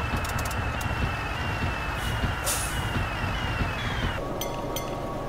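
A truck engine rumbles and winds down.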